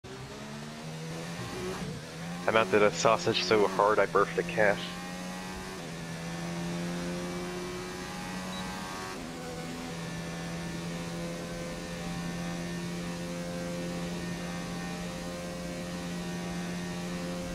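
A racing car engine screams at high revs.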